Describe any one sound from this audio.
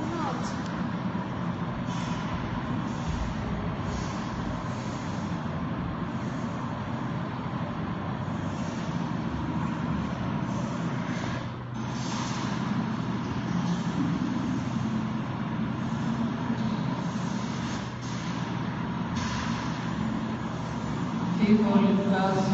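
A young woman sings into a microphone, heard through a loudspeaker in an echoing room.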